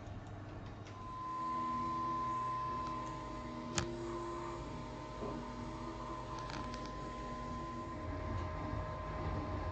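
A machine's motors whir and hum in shifting steady tones.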